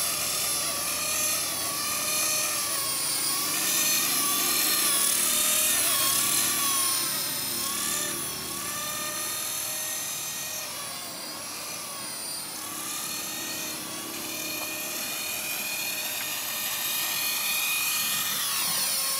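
A model helicopter's motor whines high overhead, rising and falling in pitch as it flies about.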